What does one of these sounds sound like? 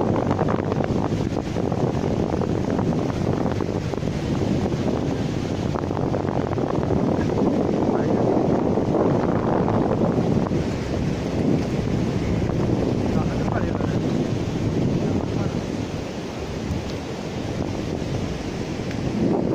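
Wind blows hard and buffets outdoors.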